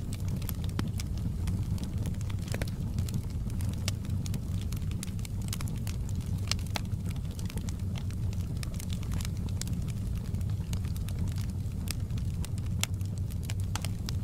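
Burning logs crackle and pop in a fire.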